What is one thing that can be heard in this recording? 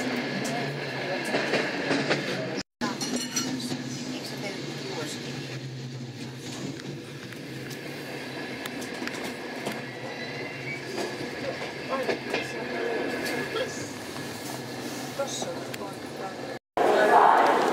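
A passenger train rumbles along the track, heard from inside the carriage.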